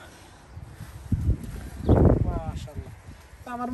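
Leaves rustle as a man shakes a pulled plant.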